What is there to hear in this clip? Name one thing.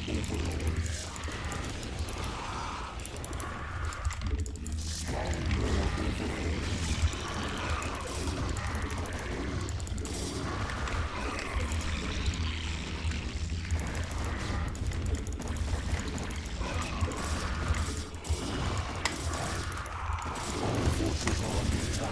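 Game sound effects of battle clatter and bursts play throughout.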